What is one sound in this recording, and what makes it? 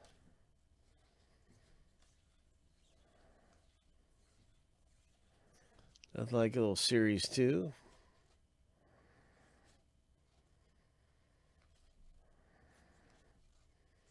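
Trading cards slide and flick against each other as they are flipped through by hand.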